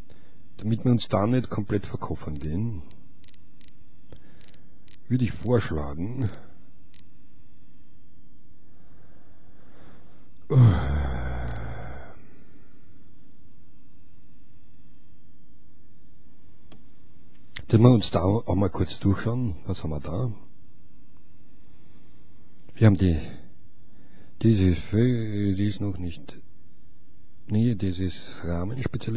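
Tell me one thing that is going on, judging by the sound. A middle-aged man talks with animation close to a studio microphone.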